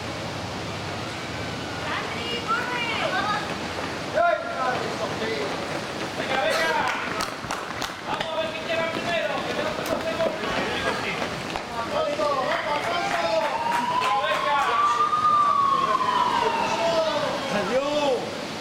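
Many feet run on a paved street.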